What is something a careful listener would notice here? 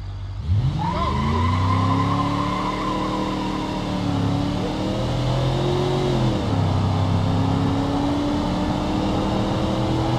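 A car engine revs and rises in pitch as the car speeds up.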